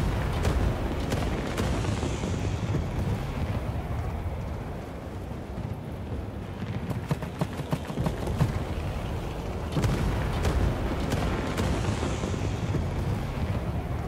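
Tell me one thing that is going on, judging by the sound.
Aircraft engines drone in the distance.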